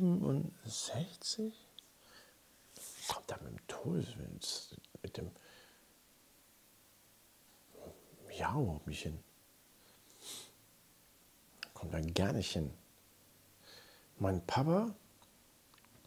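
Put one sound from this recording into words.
A man speaks into a close microphone in short, hesitant bursts.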